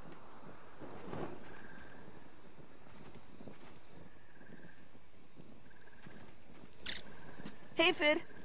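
Footsteps patter softly on the ground.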